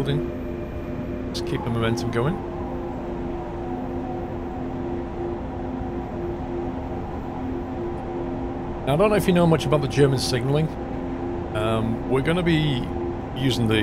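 Train wheels rumble over the rails.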